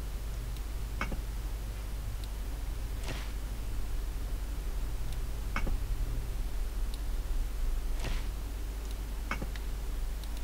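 Soft game interface clicks and swishes sound now and then as items are moved.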